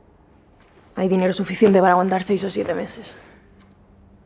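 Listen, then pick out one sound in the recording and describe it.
A young woman speaks with emotion, close by.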